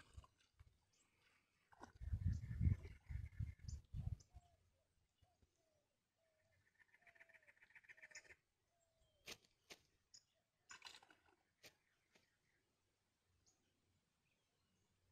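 Water laps softly around a person wading.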